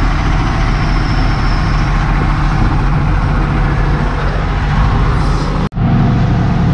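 Gravel pours from a loader bucket into a steel dump truck bed.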